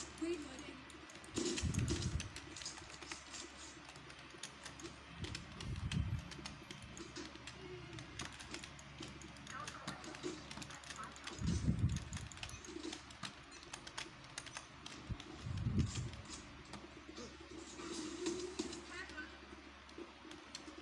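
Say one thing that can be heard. Footsteps patter quickly in a video game.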